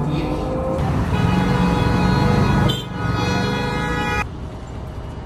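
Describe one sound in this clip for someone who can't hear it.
Cars drive past on a road.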